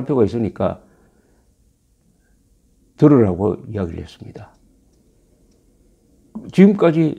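An elderly man speaks calmly and close to the microphone, with pauses.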